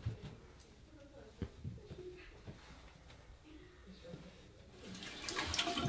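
Hands rustle through long hair close by.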